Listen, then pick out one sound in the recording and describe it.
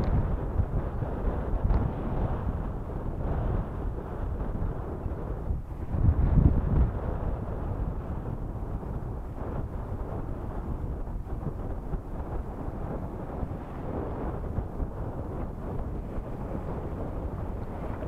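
Water laps against rocks at the shore.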